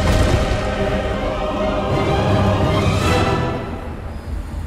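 A triumphant fanfare plays loudly and then cuts off.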